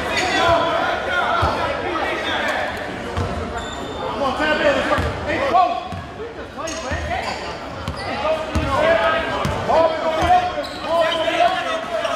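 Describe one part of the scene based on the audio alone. A crowd of spectators chatters and calls out in an echoing gym.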